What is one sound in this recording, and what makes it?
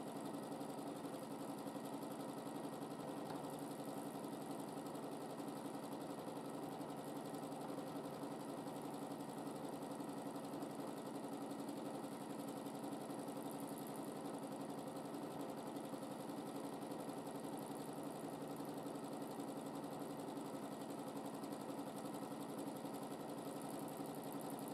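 A sewing machine hums and clatters steadily as its needle stitches rapidly.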